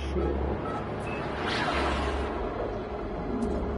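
A spaceship surges with a rising whoosh as it jumps to high speed.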